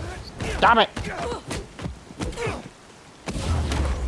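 Punches and kicks thud in a fight.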